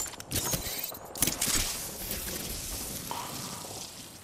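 A game character slides down a slope with a rushing scrape.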